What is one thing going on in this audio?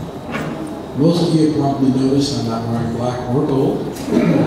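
A man speaks calmly through a microphone and loudspeakers.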